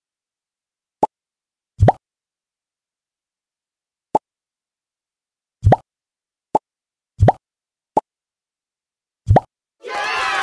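Short bright pops sound as pieces snap into place.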